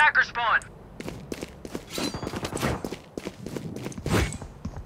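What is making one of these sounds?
Quick footsteps thud on a hard floor.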